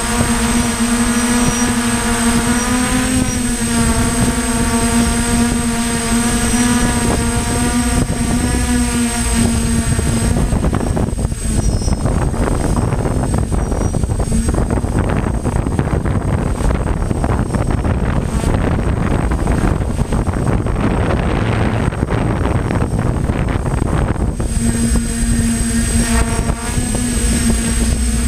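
Drone propellers whine steadily close by.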